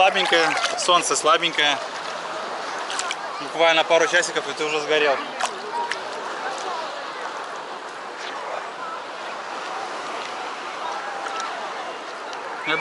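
Water laps and splashes gently around a swimmer.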